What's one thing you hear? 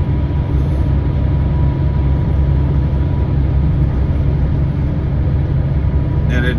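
Tyres roar on a motorway.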